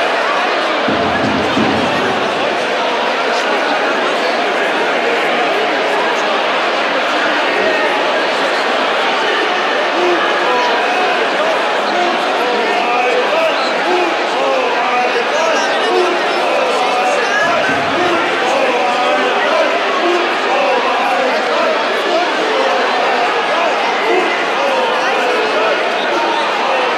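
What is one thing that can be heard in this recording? A crowd murmurs and chatters throughout a large echoing arena.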